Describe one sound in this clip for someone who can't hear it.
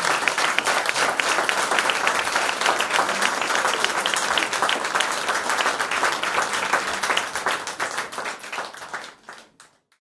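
A drummer taps out a light beat on drums and cymbals.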